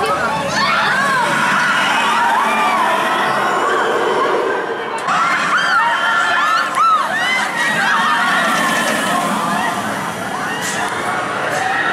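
A roller coaster train roars and rumbles along its track.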